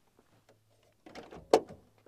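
A hand clicks against a plastic car grille.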